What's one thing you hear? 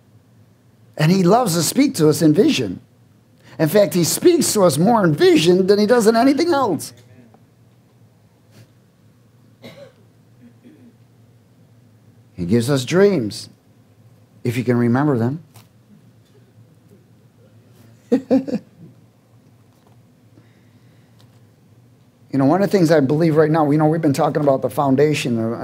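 A man speaks with animation into a headset microphone, pausing often.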